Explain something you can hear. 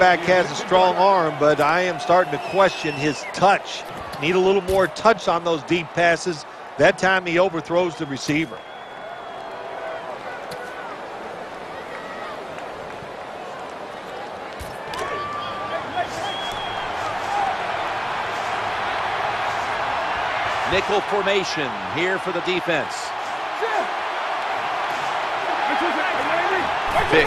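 A large crowd roars and murmurs steadily in a big open stadium, growing louder.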